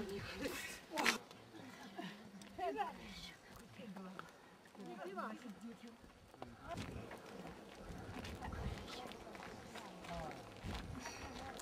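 An elderly woman murmurs a chant close by.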